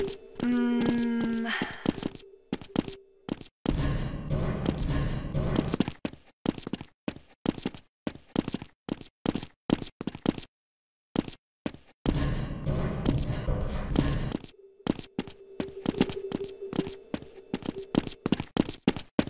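Footsteps clank quickly on a metal floor.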